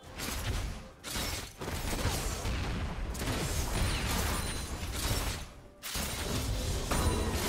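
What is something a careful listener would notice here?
Fantasy game combat effects clash, zap and burst in quick succession.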